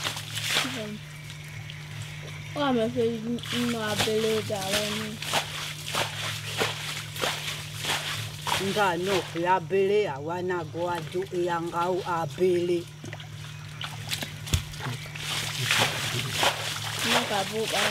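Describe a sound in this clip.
Water splashes and sloshes in a muddy stream.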